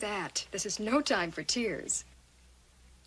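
A young woman speaks brightly nearby.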